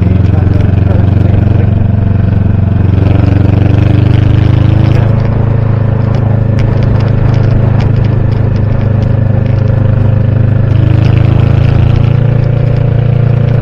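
A motorcycle engine rumbles steadily close by, rising and falling as it speeds up and eases off.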